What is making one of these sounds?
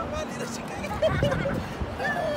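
A young child shouts and squeals playfully outdoors.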